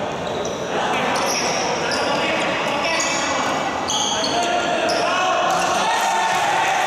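Basketball sneakers squeak on a wooden gym floor.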